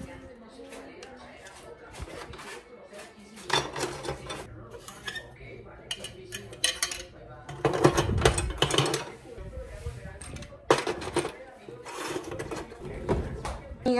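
Plastic toys clatter and rattle as they are handled in a drawer.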